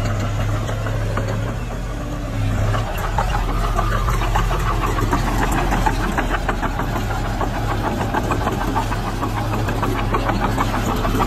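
A bulldozer engine rumbles steadily.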